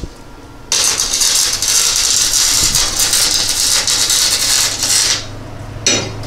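An angle grinder screams loudly against metal.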